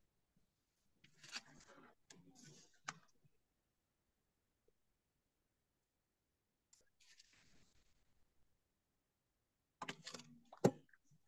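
A paintbrush swishes softly across paper.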